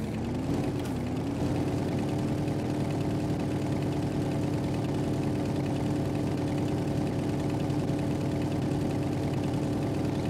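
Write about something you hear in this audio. A vehicle engine drones steadily, rising in pitch at first.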